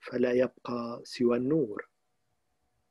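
An elderly man speaks briefly and calmly, close to the microphone.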